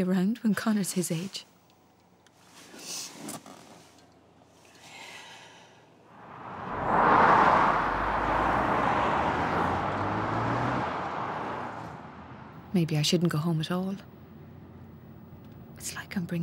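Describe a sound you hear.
A woman speaks quietly and close by.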